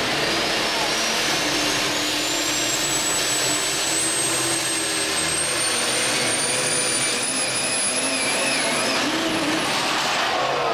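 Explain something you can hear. A diesel truck engine roars loudly at full power with a rising whine.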